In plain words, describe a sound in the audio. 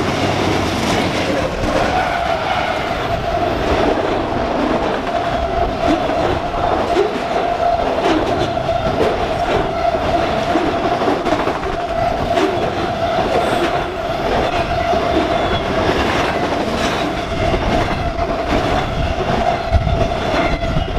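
Train wheels squeal steadily against the rails.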